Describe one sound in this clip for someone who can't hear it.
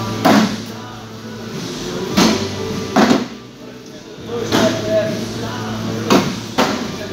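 Beanbags thud onto wooden boards in a large echoing hall.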